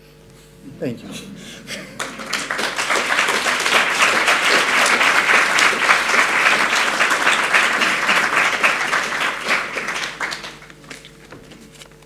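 An audience applauds loudly, then the clapping fades.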